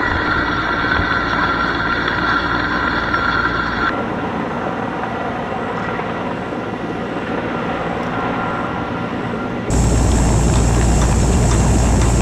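Wind buffets loudly at a great height.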